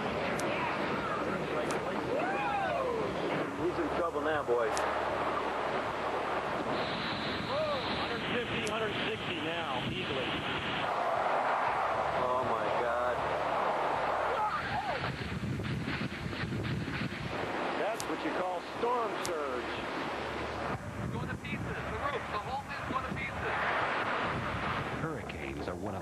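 Strong wind roars and howls.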